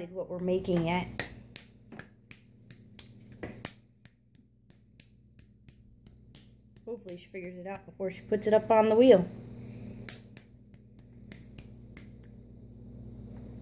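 Hands softly pat and slap a lump of clay.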